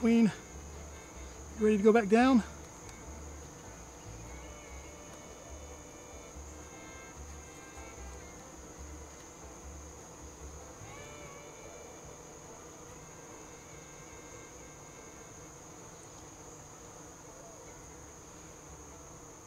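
Honeybees buzz softly close by.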